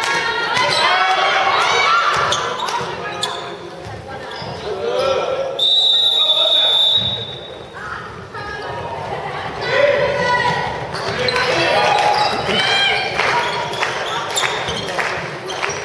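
A ball bounces on a hard floor with echoing thuds.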